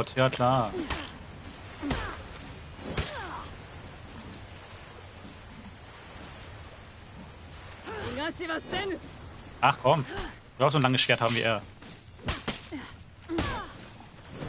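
Steel blades clash in a video game fight.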